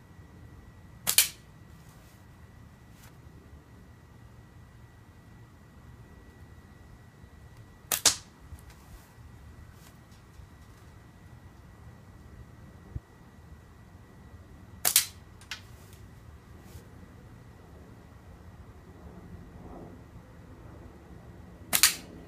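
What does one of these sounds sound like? A whip cracks sharply outdoors every few seconds.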